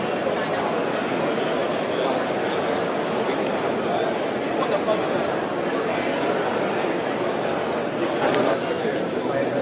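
A crowd of men and women chatter steadily all around in a large hall.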